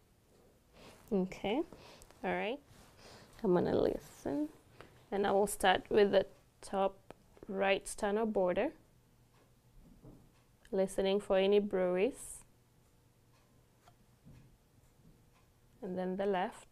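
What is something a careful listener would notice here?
A woman speaks calmly nearby, in short phrases with pauses.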